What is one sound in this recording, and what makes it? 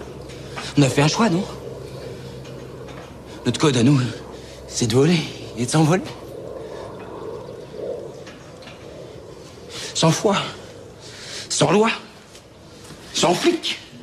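A young man speaks with animation, close by, in short bursts.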